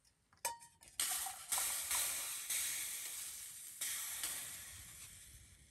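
Hot liquid pours and splashes into a metal cup.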